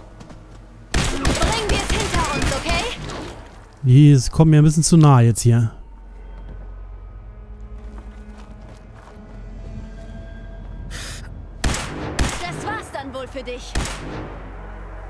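A laser rifle fires several sharp zapping shots.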